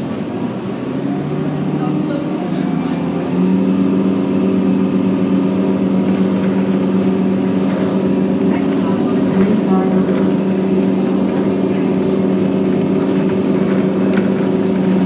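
A bus engine hums steadily and rises in pitch as the bus speeds up.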